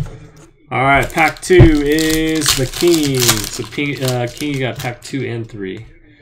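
Hands tear open a crinkling foil card pack.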